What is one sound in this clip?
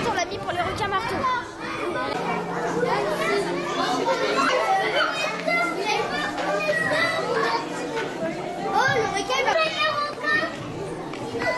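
A crowd of adults and children chatters.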